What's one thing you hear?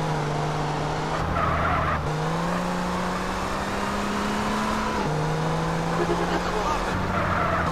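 A car engine hums steadily and revs as the car drives along.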